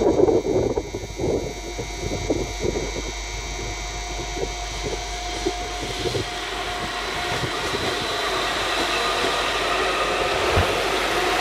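A hybrid diesel-electric train pulls away, its drive noise growing.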